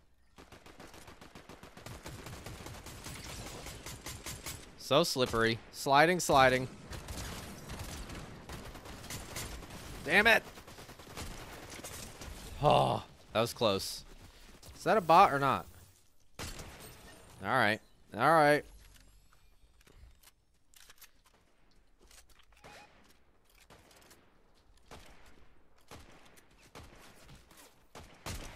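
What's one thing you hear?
Gunshots crack in quick bursts from a video game.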